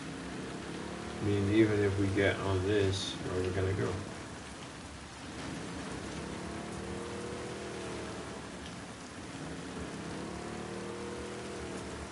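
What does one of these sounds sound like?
Water splashes against a moving boat.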